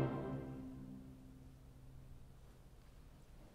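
An orchestra's last chord rings out and fades in a large echoing hall.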